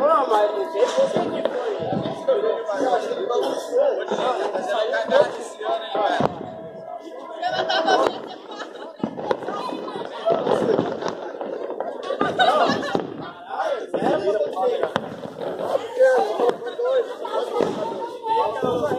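Several men talk loudly with animation outdoors, close by.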